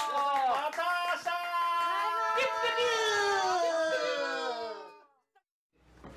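Several people call out together in lively, sing-song voices.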